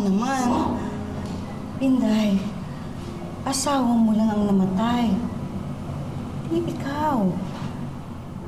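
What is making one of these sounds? A middle-aged woman sobs and wails loudly nearby.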